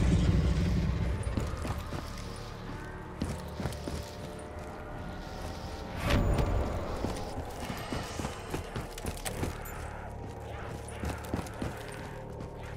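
Footsteps thud steadily across a floor.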